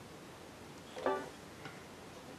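A banjo's strings twang briefly once.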